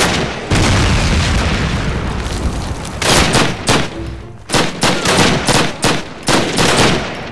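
A rifle fires repeated loud shots that echo.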